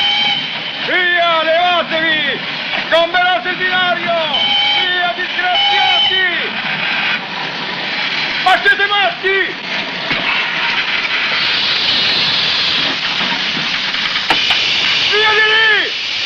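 A man shouts angrily and loudly from a passing locomotive.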